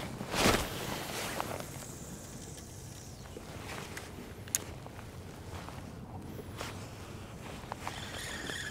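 Small waves lap against a kayak's hull outdoors.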